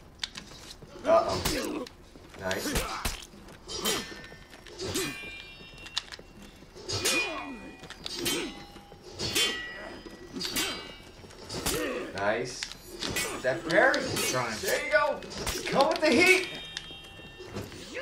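Swords clash and clang in quick blows.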